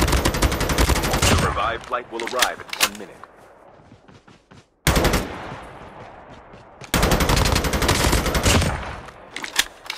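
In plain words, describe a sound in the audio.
Gunfire crackles in rapid, loud bursts.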